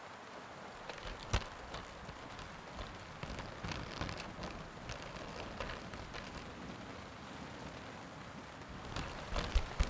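Raindrops patter on a car roof and windows.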